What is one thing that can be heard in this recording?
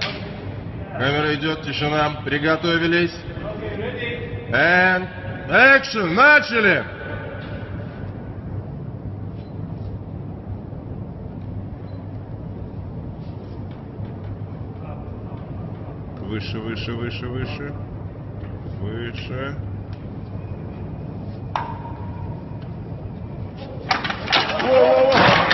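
Men talk with animation nearby in a large echoing hall.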